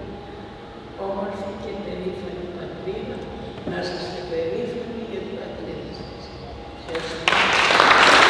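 A woman speaks calmly through a microphone in an echoing hall.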